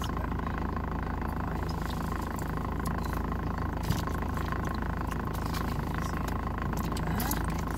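A man crunches food while chewing close by.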